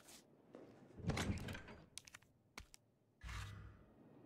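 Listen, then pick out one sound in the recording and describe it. A heavy metal chest lid swings open with a clunk.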